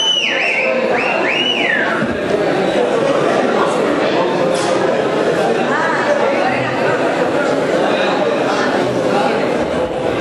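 A band plays loudly in a large hall.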